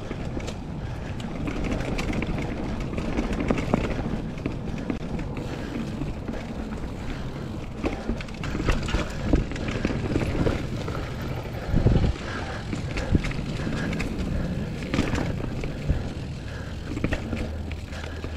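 Bike tyres roll and crunch over a dirt trail with dry leaves.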